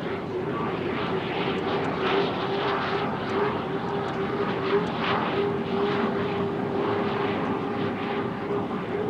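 A racing boat's engine roars steadily at high speed.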